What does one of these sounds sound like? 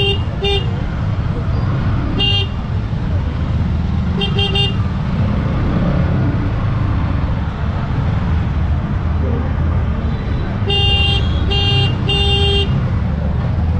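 Motorbike horns beep in short bursts.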